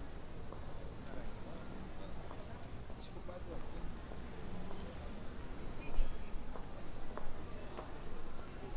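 Footsteps tap on paving stones nearby.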